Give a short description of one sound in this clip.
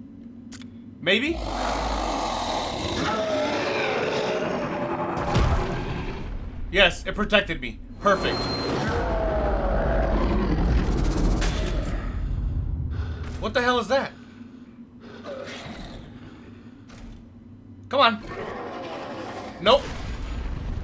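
A huge beast roars loudly.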